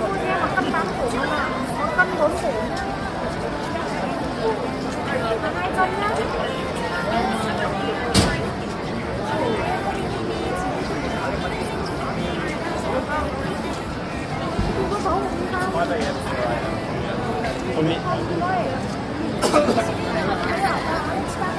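A busy crowd of men and women chatters outdoors.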